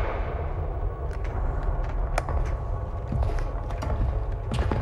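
Heavy metallic footsteps clank.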